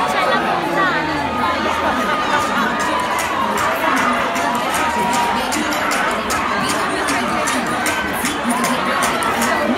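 A large crowd chatters and screams loudly all around.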